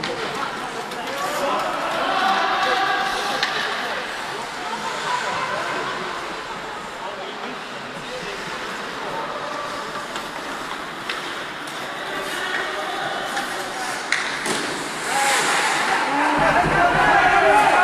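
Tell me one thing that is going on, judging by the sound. Spectators shout and cheer in a large echoing rink.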